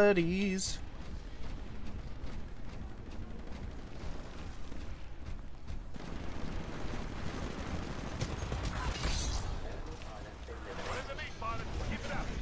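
A heavy machine gun fires in rapid bursts.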